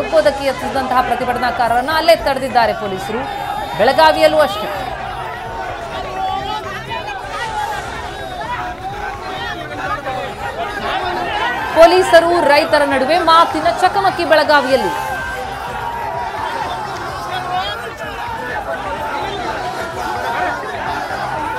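A crowd of men shout and clamour close by.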